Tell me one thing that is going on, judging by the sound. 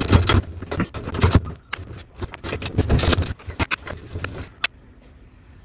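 A wrench clinks and scrapes against metal fittings.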